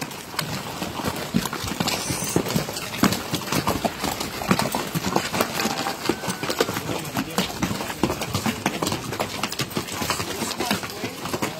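Horse hooves clop on hard dirt close by.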